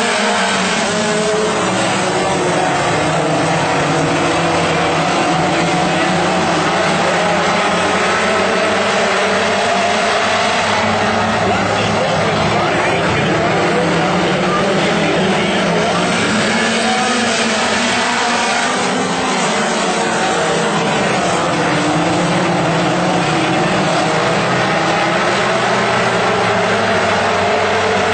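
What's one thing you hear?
Dirt modified race cars roar by at full throttle on a dirt oval.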